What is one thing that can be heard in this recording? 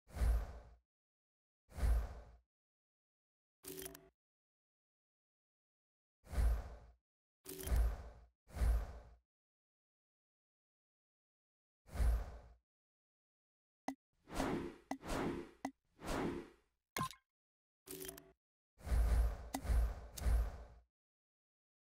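Short whooshing swishes sound again and again as game menus change.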